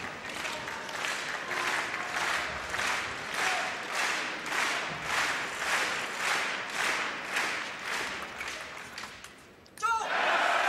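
A large crowd claps in steady rhythm in a big echoing hall.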